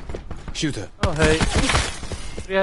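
A gun fires a short burst of shots.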